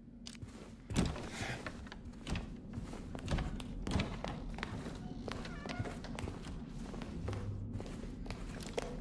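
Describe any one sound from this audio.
Footsteps thud slowly across a hard floor.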